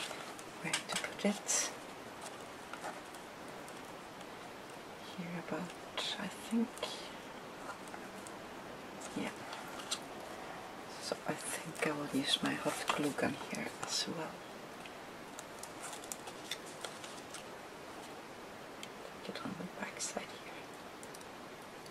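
Paper and card rustle and scrape as hands handle them.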